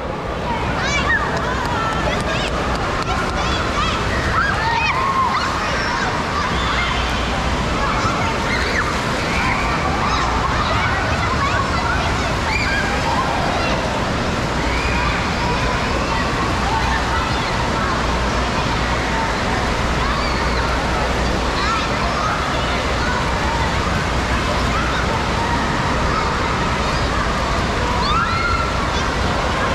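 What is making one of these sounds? Many children shout and shriek throughout, echoing in a large indoor hall.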